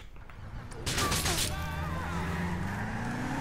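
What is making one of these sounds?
A car engine revs up as the car pulls away.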